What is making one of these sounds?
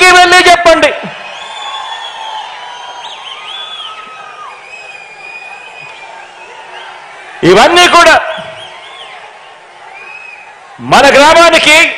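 A large crowd cheers and murmurs in the distance.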